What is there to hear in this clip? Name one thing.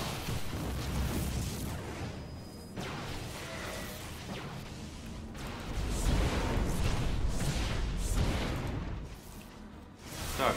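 Game effects whoosh and crackle.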